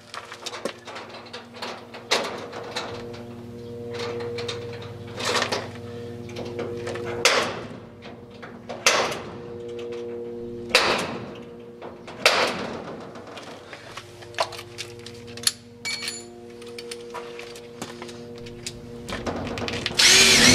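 Keys and metal parts click and scrape against a door lock.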